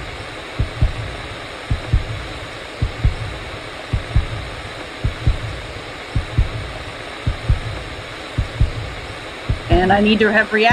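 A heartbeat thuds slowly in pairs.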